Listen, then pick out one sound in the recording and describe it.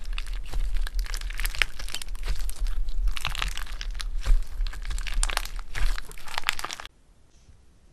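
Clear slime crackles and crunches as hands squeeze it.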